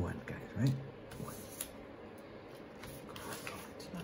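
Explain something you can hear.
Paper rustles.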